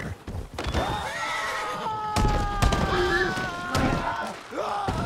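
A horse whinnies as it falls.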